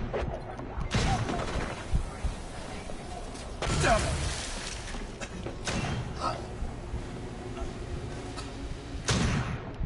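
Loud gunfire bursts out in short volleys.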